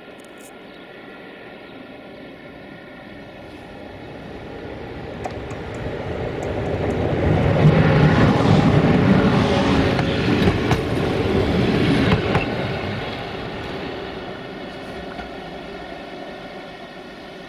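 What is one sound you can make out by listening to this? An electric train approaches, roars past close by and fades into the distance.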